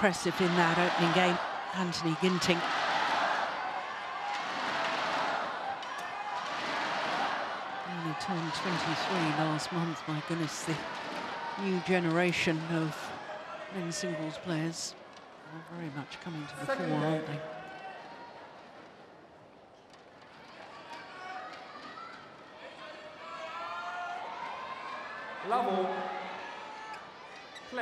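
A crowd murmurs and claps in a large echoing hall.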